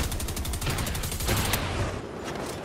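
Rapid gunfire rattles up close.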